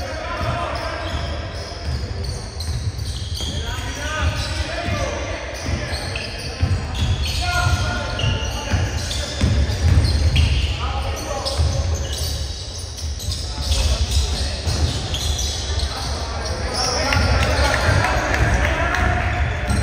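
A basketball bounces with dull thumps on the floor.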